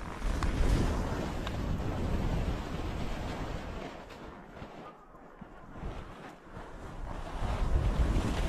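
Wind rushes past, rumbling and buffeting.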